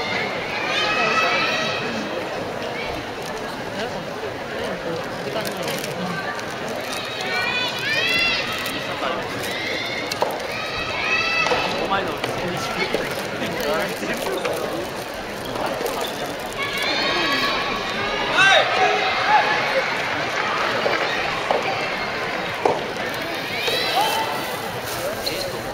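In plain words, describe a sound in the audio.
Young men shout and cheer loudly in a large echoing hall.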